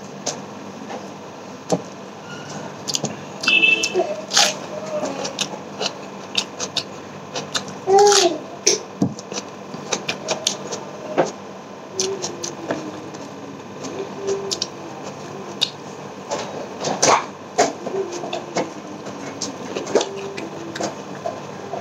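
Fingers squish and mix food on a plate.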